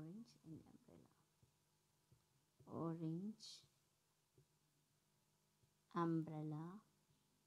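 A young woman speaks slowly and clearly into a close microphone.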